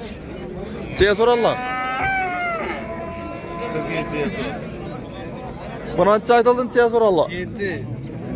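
A cow moos loudly close by.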